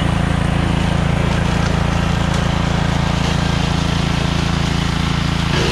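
A walk-behind brush mower's engine drones loudly and steadily close by.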